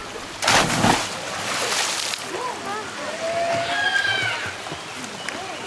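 A boy splashes while swimming.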